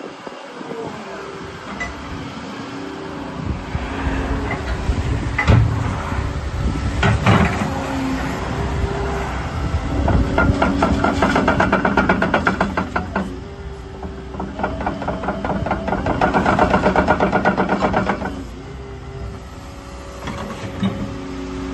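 A diesel tracked excavator engine runs.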